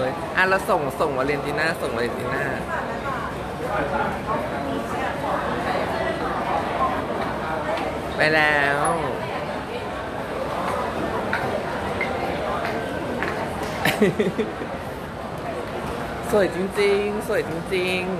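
A crowd of people chatter nearby in a large echoing hall.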